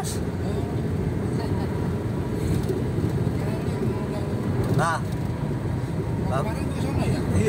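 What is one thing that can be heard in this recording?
A car drives along a road, its engine and tyres rumbling steadily from inside.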